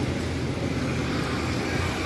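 Motor scooters buzz past.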